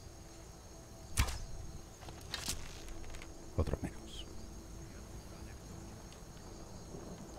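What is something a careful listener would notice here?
A bow string twangs as an arrow is loosed.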